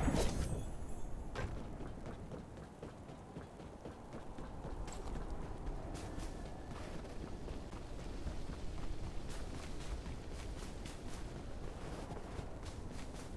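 Quick footsteps patter as a figure runs.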